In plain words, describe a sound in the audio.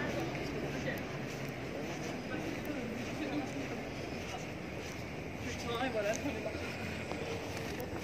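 Footsteps walk on stone paving.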